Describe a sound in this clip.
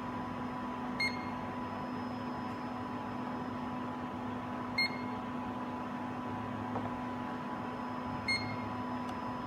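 A measuring machine gives short high beeps as its probe touches metal.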